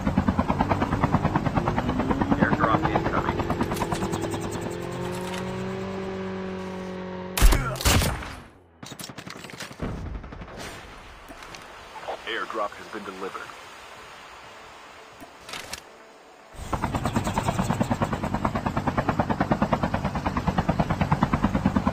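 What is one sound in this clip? A helicopter's rotor thumps in a fast, steady beat.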